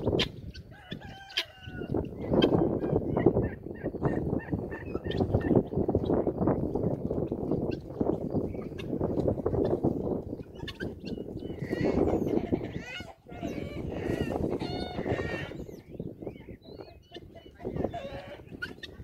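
Guineafowl call with harsh, repeated cries.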